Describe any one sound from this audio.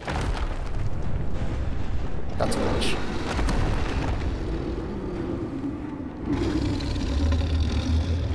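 Strong wind howls steadily in a snowstorm.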